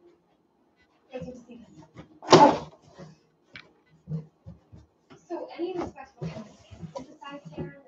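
Cardboard flaps rustle and scrape as a box is opened.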